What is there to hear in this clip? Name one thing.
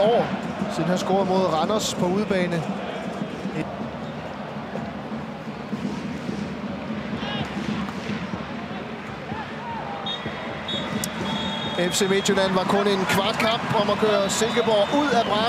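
A large stadium crowd murmurs and chants in the distance.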